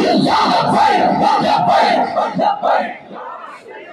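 A large crowd chants loudly together.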